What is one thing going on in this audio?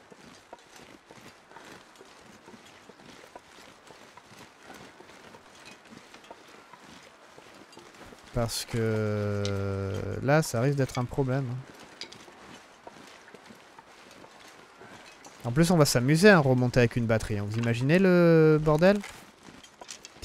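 Footsteps crunch softly through snow.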